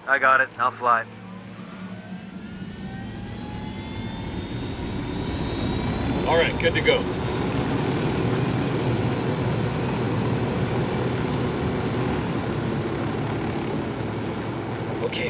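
A helicopter engine whines louder and louder as its rotor speeds up and roars.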